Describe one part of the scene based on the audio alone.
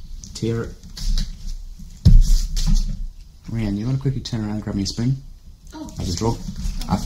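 A young man talks calmly and clearly, close to a microphone.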